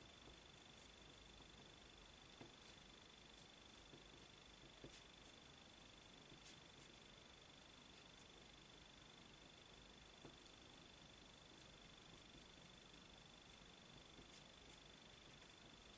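A pen scratches softly on card.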